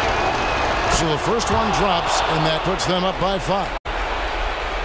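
A crowd cheers loudly after a shot.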